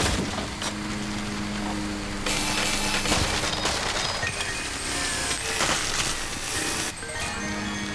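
A video game vacuum whooshes as it sucks in air.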